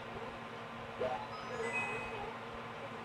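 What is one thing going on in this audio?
Short rising beeps chirp from a video game.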